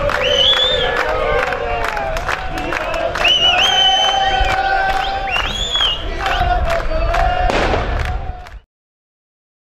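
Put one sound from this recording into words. A large outdoor crowd chants and sings loudly.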